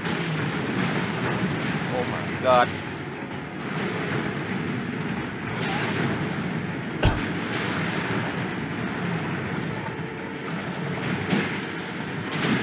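A giant beast growls and thuds as it attacks.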